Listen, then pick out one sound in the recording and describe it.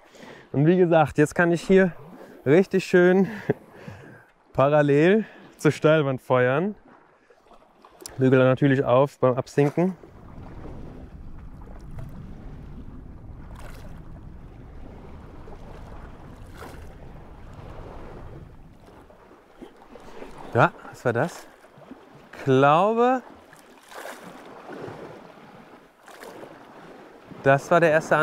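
Water laps gently against rocks.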